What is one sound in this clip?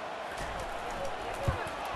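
Football players collide with a dull thud.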